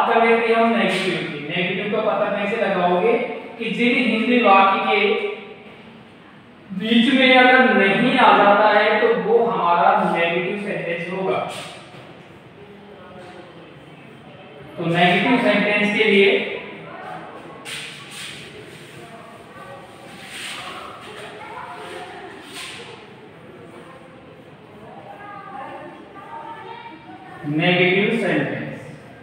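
A man speaks clearly and steadily, close by.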